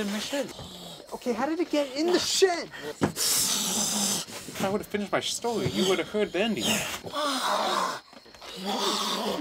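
A young man talks tensely up close.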